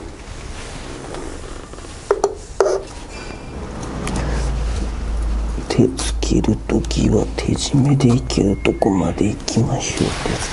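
A metal oil filter is turned by hand with soft scraping and clicks.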